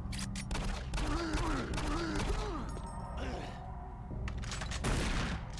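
A monster growls and snarls.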